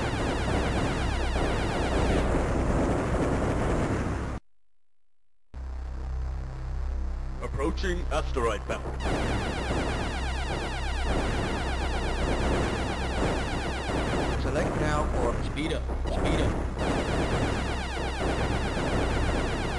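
Explosions burst now and then.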